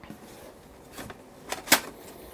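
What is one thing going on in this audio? A metal panel knocks and clanks.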